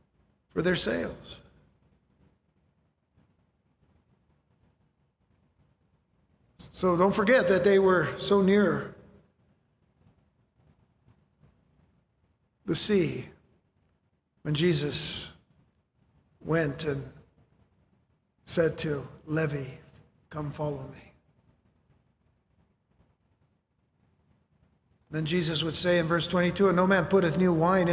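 A middle-aged man speaks calmly into a microphone, with long pauses between phrases.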